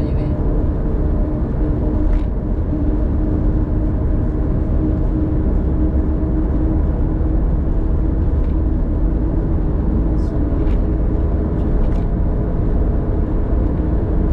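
Tyres roll with a steady low rumble on the road.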